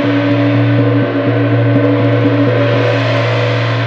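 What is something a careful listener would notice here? A soft mallet taps rapidly on a large gong.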